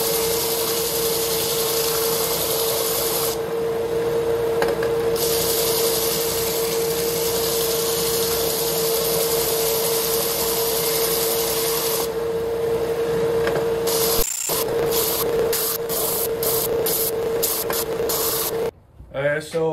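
Wood rasps against a sanding belt.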